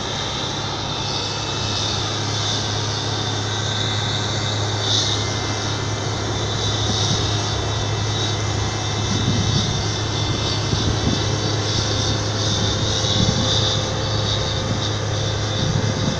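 A tractor engine rumbles at a low idle.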